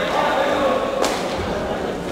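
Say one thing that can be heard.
A kick smacks against a padded body protector.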